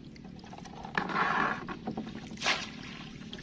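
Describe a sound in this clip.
Water splashes and drips as a wire trap is lifted from the water.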